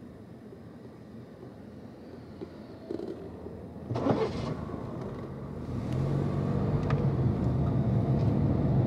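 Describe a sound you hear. Traffic rumbles past on the road.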